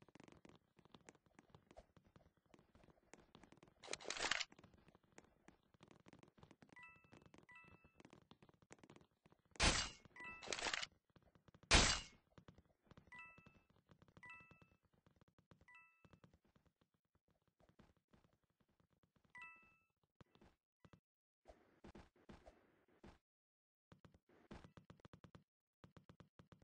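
Quick light footsteps patter along.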